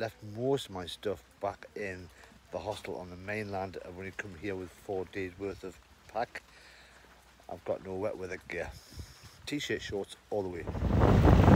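A middle-aged man speaks close to a microphone, calmly and warmly.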